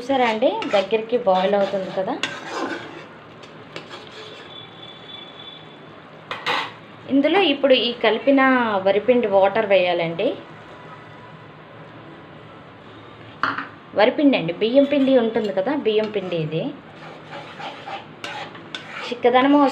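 A spatula scrapes and stirs inside a wok.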